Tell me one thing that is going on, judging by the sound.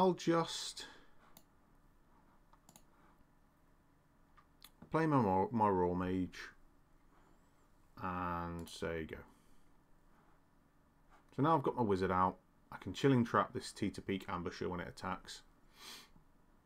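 A man speaks casually into a close microphone, in short bursts with pauses.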